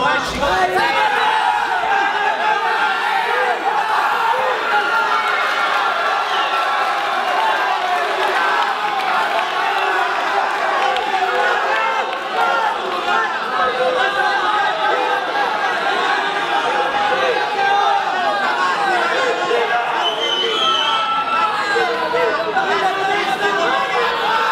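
A large crowd of spectators shouts and cheers.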